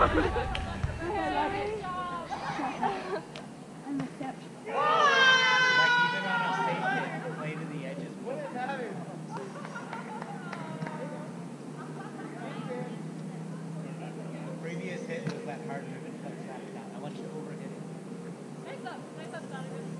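Young women talk casually nearby, outdoors.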